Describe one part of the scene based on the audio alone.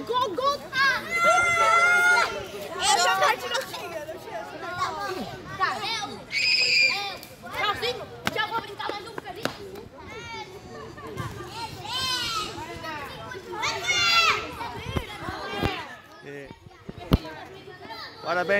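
Children and adults chatter and laugh close by outdoors.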